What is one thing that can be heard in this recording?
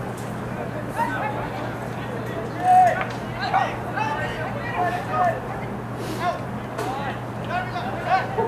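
Spectators shout and cheer from the sidelines outdoors.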